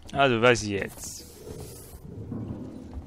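A sliding door opens with a hiss.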